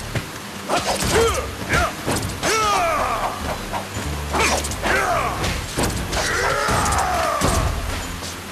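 Bat-like creatures shriek.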